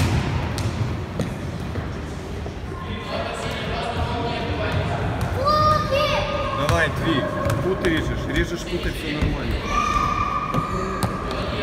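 A ball is kicked with dull thuds in an echoing hall.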